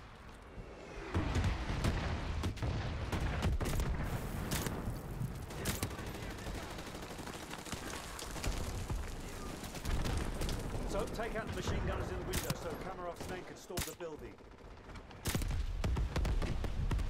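Gunfire and explosions rumble in the distance.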